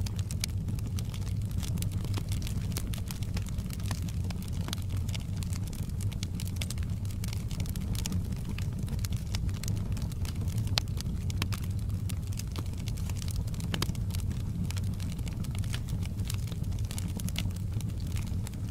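Flames roar softly with a low rumble.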